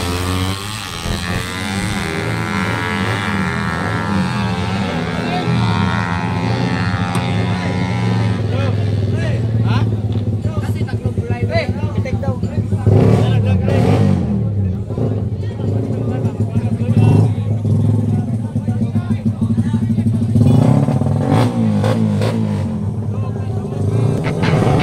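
Motorcycle engines idle and rev loudly nearby.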